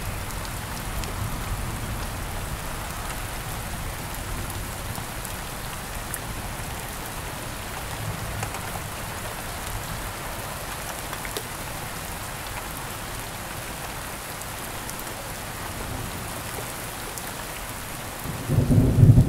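Thunder rumbles low in the distance, now and then.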